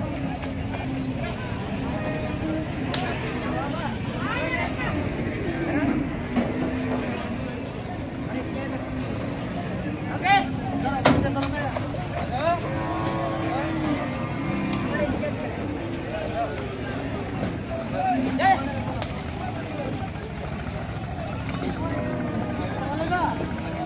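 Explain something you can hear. Men shout and call out to each other outdoors nearby.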